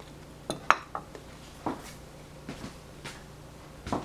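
A metal fork clinks against a ceramic plate.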